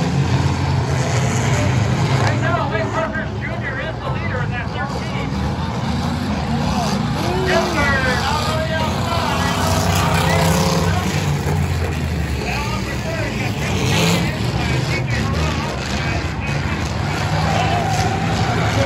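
Race car engines roar steadily around a track.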